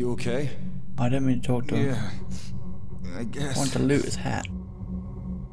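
A young man answers quietly and glumly.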